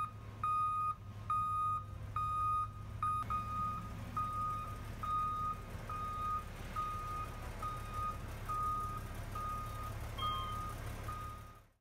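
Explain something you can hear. A truck's warning alarm beeps steadily.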